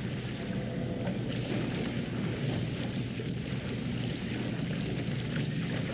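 Water splashes as a woman swims.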